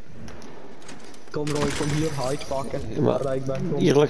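A metal chest creaks open.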